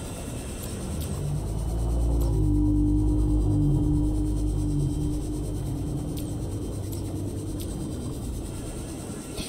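A small submarine's engine hums low and steady.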